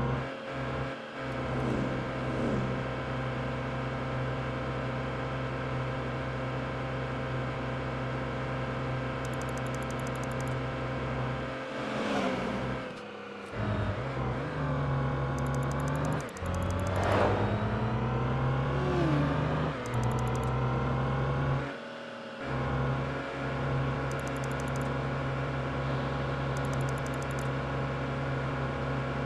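A truck engine drones steadily, dipping briefly at gear changes.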